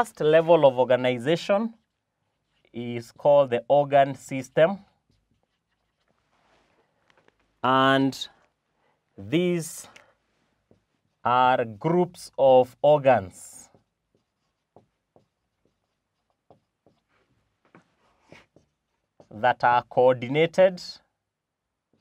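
A man speaks calmly and clearly, close by, in short phrases.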